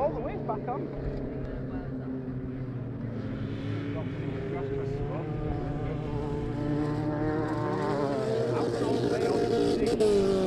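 Several car engines roar and rev nearby.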